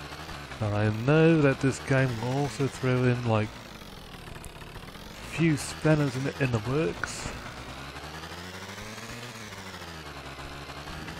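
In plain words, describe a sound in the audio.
A small scooter engine hums steadily, rising and falling slightly in pitch.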